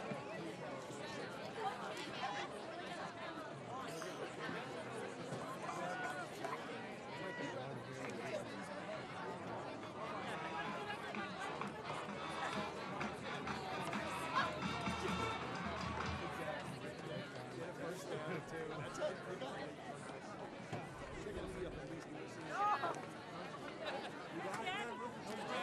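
A crowd of young people chatter and call out outdoors nearby.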